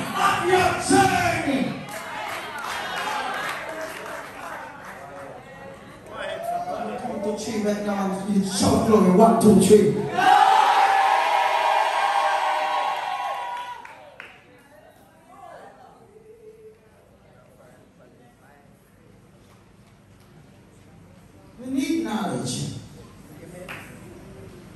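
A man preaches loudly and with animation through a microphone in an echoing hall.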